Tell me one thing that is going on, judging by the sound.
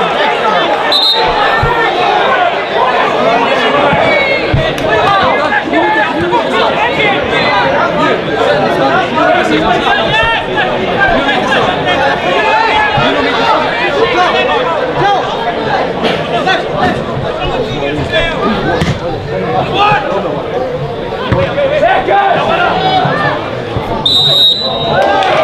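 A referee's whistle blows short sharp blasts.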